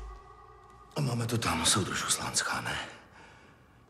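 A middle-aged man speaks in a strained, emotional voice.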